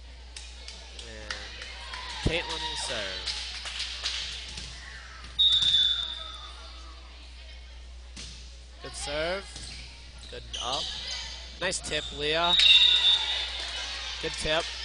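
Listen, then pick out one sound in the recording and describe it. Girls shout and cheer in a large echoing gym.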